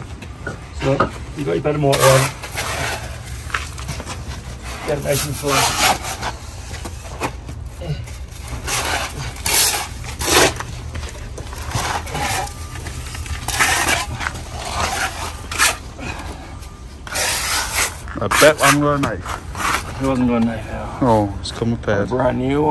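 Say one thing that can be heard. A plastic membrane roll crackles as it is unrolled along the ground.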